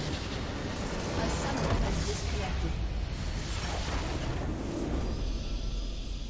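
A huge structure explodes with a deep rumbling boom.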